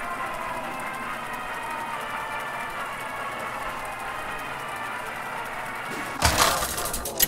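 A game's spinning reel whirs with a steady hum.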